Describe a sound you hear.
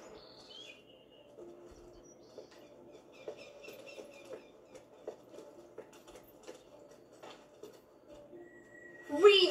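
Footsteps tap on cobblestones through a television speaker.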